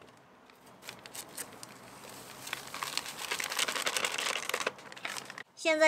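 A paper bag rustles as powder pours out of it.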